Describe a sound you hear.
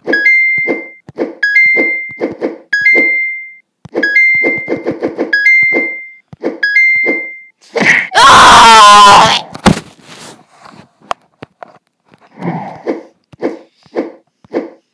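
Short whooshing wing flaps from a game repeat quickly.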